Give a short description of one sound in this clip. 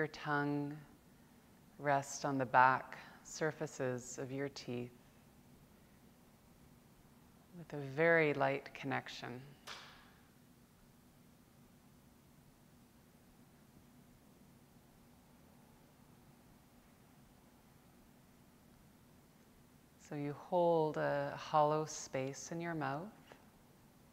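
A woman speaks calmly and slowly, with long pauses.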